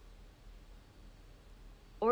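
A man speaks into a microphone, close by.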